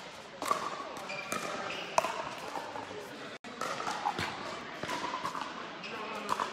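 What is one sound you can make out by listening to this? Paddles hit a plastic ball with sharp pops in an echoing hall.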